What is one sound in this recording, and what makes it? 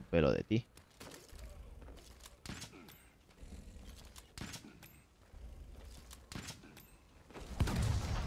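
Weapon strikes clash and thud in a game.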